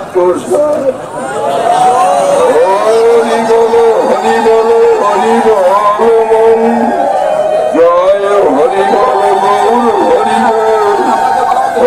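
A crowd of people chant along outdoors.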